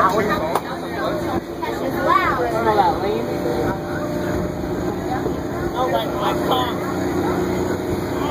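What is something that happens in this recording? Children and teenagers chatter and shout loudly nearby.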